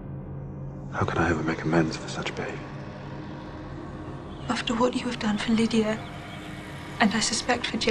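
A young woman answers softly.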